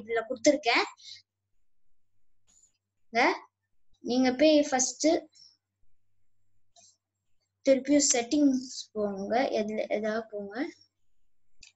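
A boy speaks close to a computer microphone, in short bursts with pauses.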